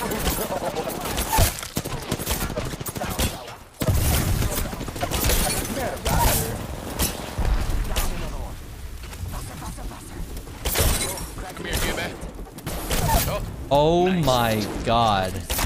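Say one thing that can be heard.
A bow fires arrows with sharp twangs.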